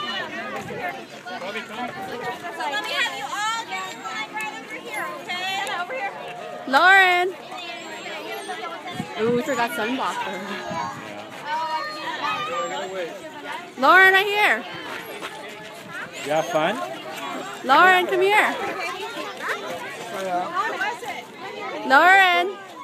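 Young children chatter and call out excitedly nearby, outdoors.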